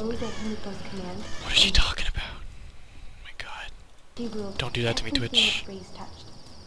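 A young woman speaks with feeling, close by.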